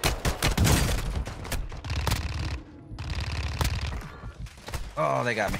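Rapid gunshots crack and echo.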